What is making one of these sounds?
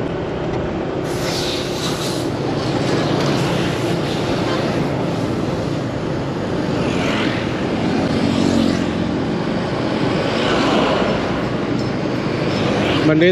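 Passing motorbikes whoosh by.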